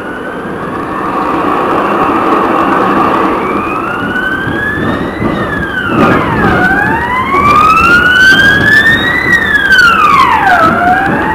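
Tram wheels rumble and clatter over the rails.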